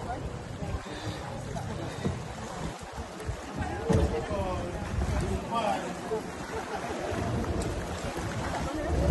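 Water splashes and churns against the hull.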